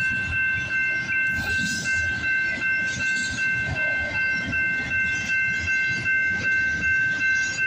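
A freight train rumbles and clatters past on the rails.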